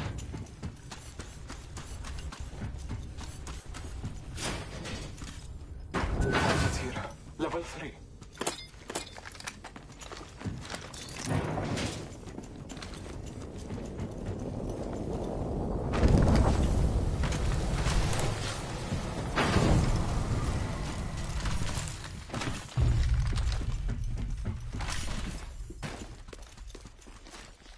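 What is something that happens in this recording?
Footsteps run over a hard metal floor.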